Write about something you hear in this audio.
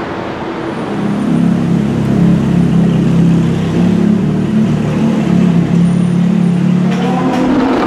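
A sports car engine growls as the car drives off, echoing in an enclosed space.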